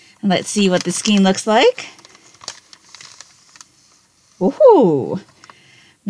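Paper crinkles and rustles as a bag is opened.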